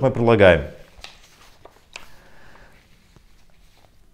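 Paper rustles as a man handles it.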